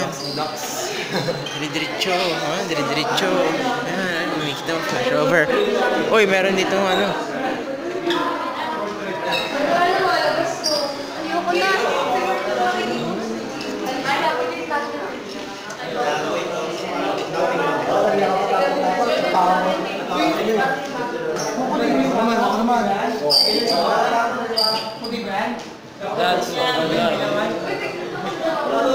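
A crowd of young people chatter loudly all around in an echoing room.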